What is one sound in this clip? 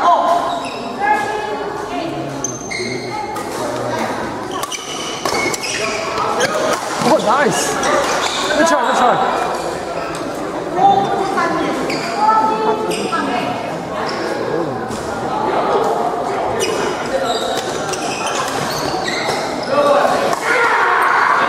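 Badminton rackets strike a shuttlecock.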